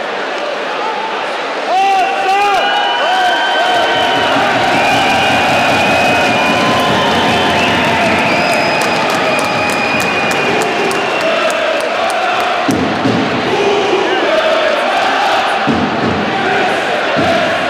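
A large crowd cheers and chants in a big echoing arena.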